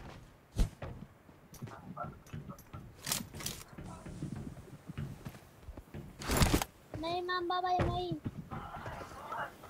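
Footsteps clatter across a metal roof.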